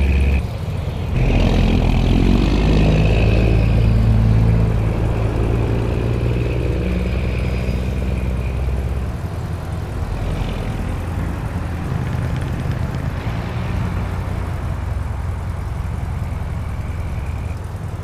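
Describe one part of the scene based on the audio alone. Traffic hums steadily along a road.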